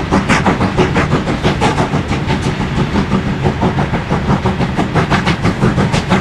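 A steam locomotive chuffs rapidly and steadily in the distance.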